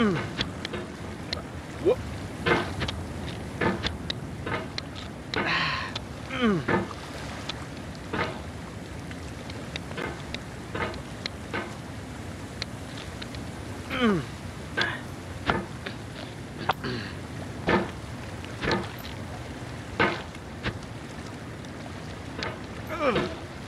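A hammer clangs and scrapes against rocks again and again.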